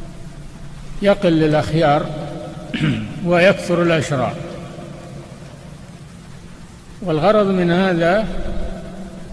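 An elderly man speaks slowly into a microphone.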